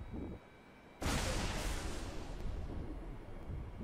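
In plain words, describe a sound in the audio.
Heavy punches land with loud thuds and crashes.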